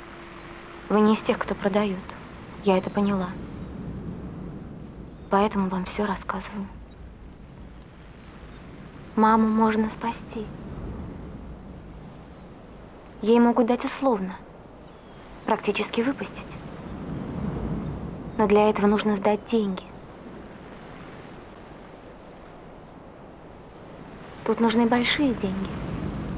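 A young woman speaks calmly in short phrases, close by.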